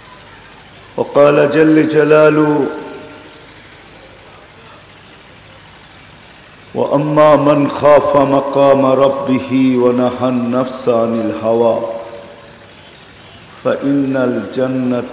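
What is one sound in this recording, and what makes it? An elderly man speaks forcefully into a microphone, heard through a loudspeaker.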